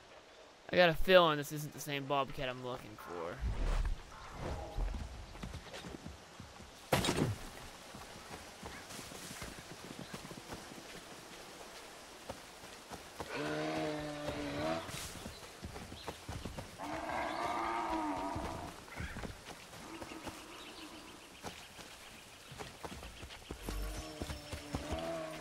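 Footsteps crunch on leaves and rock.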